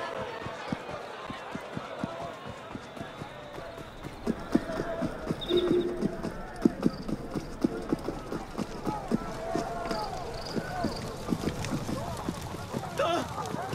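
A crowd murmurs and chatters in the street.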